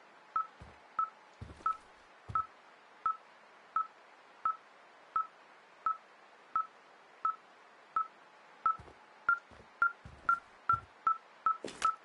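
An electronic detector beeps steadily, with the beeps coming faster toward the end.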